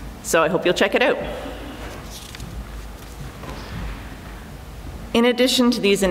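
A woman speaks calmly into a microphone in a large echoing room.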